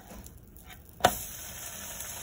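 A sandwich flops down onto a hot frying pan.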